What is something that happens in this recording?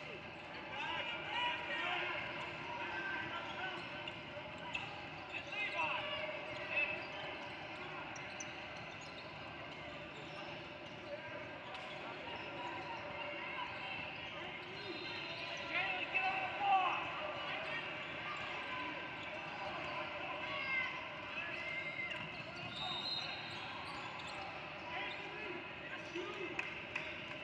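Spectators and players shout and call out across the echoing gym.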